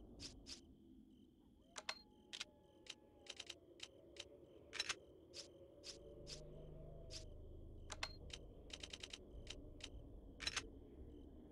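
Short electronic menu clicks tick in quick bursts.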